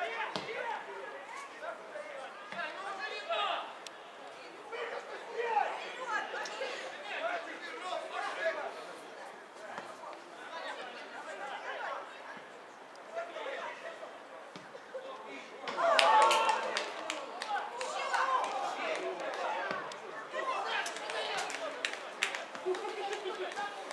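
Football players shout and call to each other across an open pitch outdoors.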